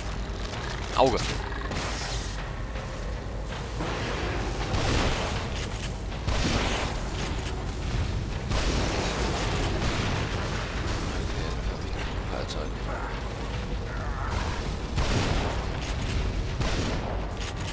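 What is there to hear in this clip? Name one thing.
A shotgun fires with loud booms.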